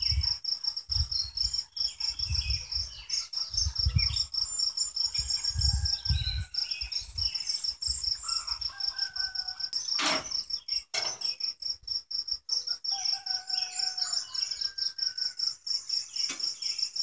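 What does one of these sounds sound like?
Bees buzz around an open hive outdoors.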